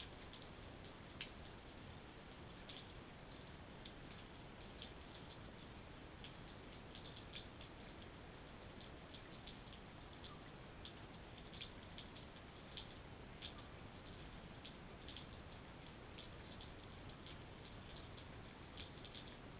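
Raindrops drip and tap onto a wet patio.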